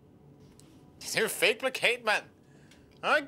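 A young man speaks nearby.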